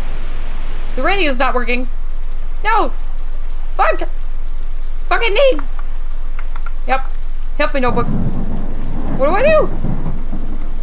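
A woman speaks in short, surprised bursts close to a microphone.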